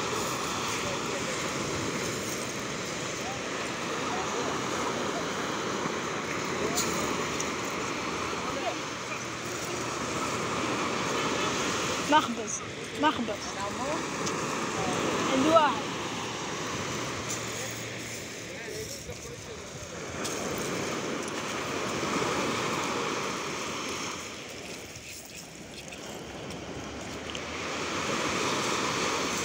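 Waves wash and break on the shore in a steady rush.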